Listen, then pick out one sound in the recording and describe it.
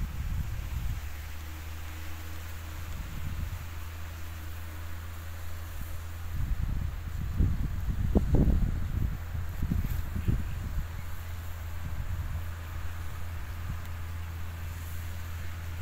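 A tractor engine hums steadily in the distance.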